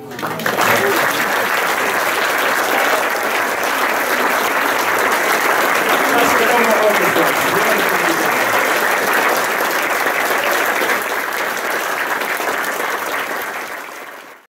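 An audience applauds loudly in a large room and slowly fades.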